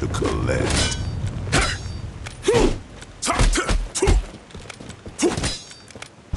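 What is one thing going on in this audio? Sharp blows and sword clashes ring out in a fight.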